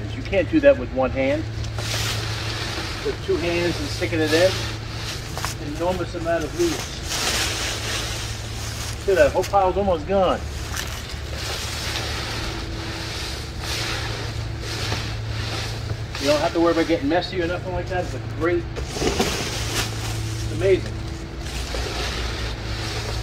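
Dry leaves rustle and crunch as they are scooped and dropped into a plastic bin.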